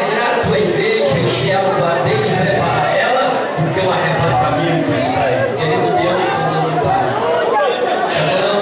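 An elderly man speaks with fervour through a microphone and loudspeakers.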